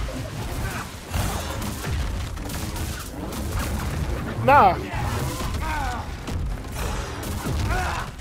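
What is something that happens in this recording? A lightsaber hums and whooshes as it swings.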